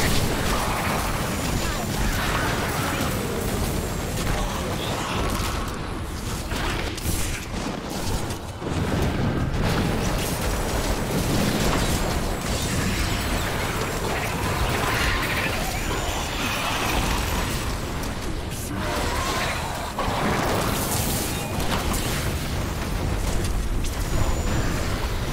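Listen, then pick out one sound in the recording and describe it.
Magical energy beams crackle and blast in rapid bursts.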